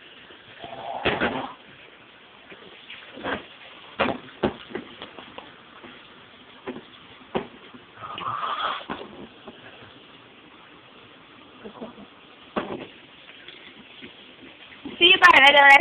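Objects knock and clink as they are handled close by.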